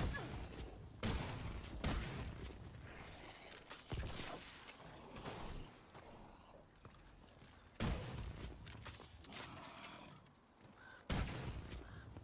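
A futuristic gun fires in sharp blasts.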